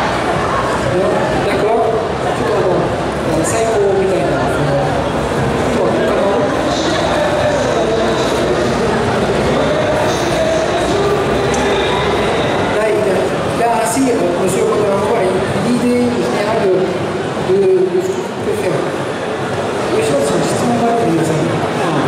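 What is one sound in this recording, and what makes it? A middle-aged man speaks into a microphone with animation, heard through loudspeakers outdoors.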